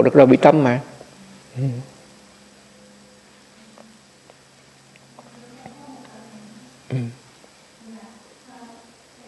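An elderly man speaks slowly and calmly, close by, with long pauses.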